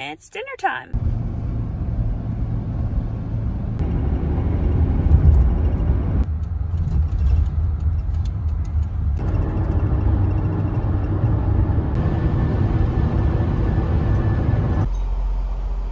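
A car's engine and tyres rumble steadily on a road.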